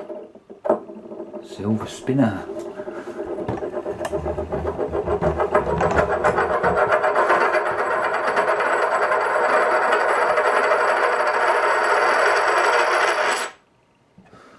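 A coin spins and wobbles on a wooden table with a rising whir that stops suddenly.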